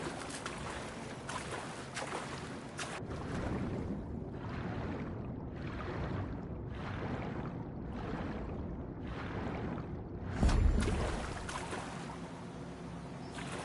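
Water surges and bubbles in slow, repeating waves.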